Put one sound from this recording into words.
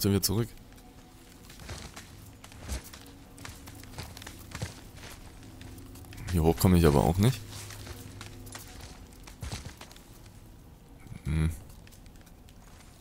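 Hands and boots scrape and thud against rock during a climb.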